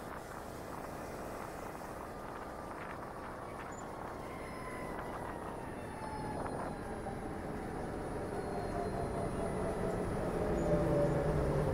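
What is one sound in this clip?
Wind rushes past.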